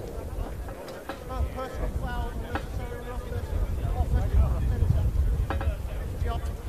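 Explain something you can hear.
A man announces calmly through a loudspeaker that echoes outdoors.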